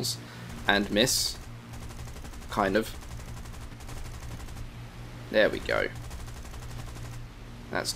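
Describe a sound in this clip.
Aircraft machine guns fire in rapid bursts.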